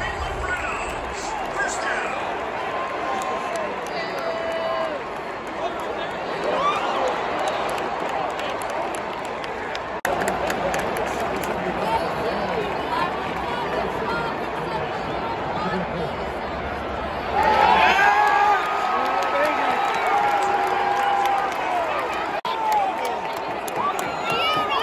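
A large stadium crowd roars and chatters steadily in the open air.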